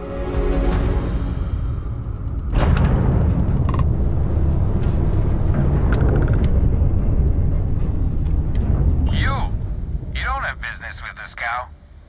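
A spaceship engine rumbles deeply and steadily.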